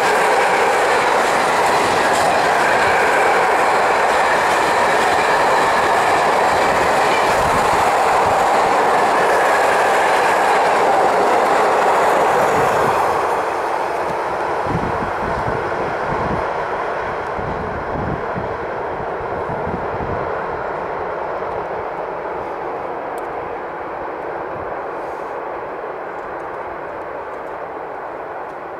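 A freight train rattles past close by, wheels clattering over the rails, then fades into the distance.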